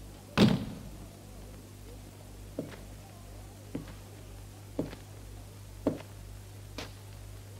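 Boots thud slowly across a wooden floor.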